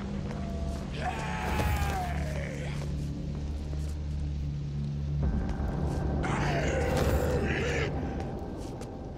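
A zombie groans and snarls close by.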